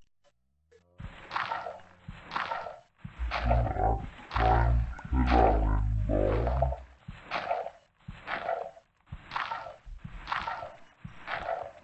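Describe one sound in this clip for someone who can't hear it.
A shovel crunches into dirt again and again.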